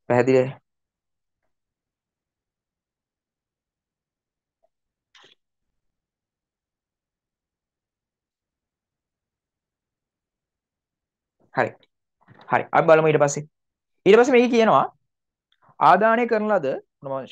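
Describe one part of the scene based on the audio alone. A young man speaks calmly and clearly, in short bursts with pauses.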